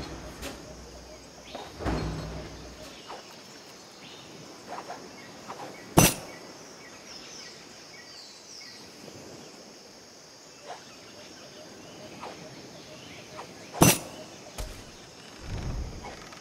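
Waves lap gently on a beach.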